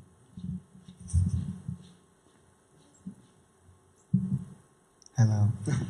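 A middle-aged man speaks calmly into a microphone in a large room.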